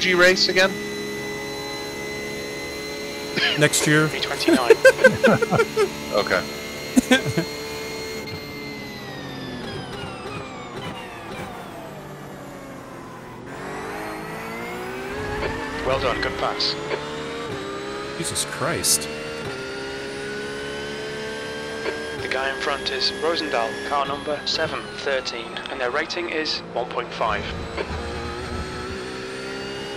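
A race car engine roars steadily, dropping in pitch as it slows and rising again as it speeds up.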